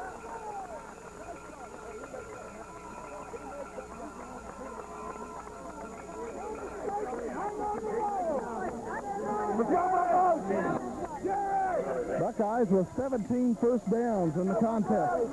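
A crowd of people cheers and shouts, growing louder.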